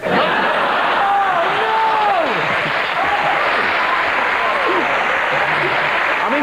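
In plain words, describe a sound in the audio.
People in a crowd whoop and whistle.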